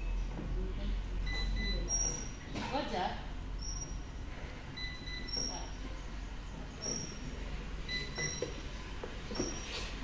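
Exercise machines whir steadily.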